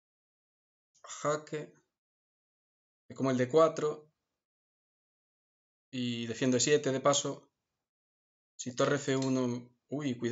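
A man speaks calmly and thoughtfully into a close microphone, in short bursts with pauses.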